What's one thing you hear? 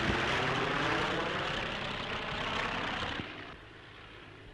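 A propeller plane engine roars overhead and fades away.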